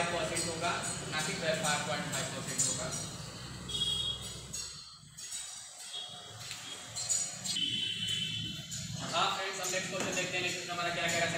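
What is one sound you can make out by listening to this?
A young man speaks calmly and explains into a nearby microphone.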